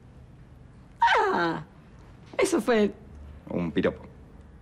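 A young woman laughs and speaks cheerfully, close by.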